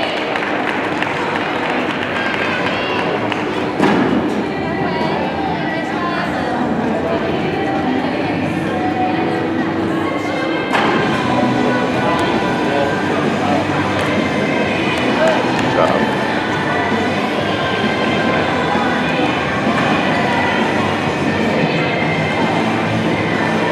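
A crowd chatters throughout a large echoing gym.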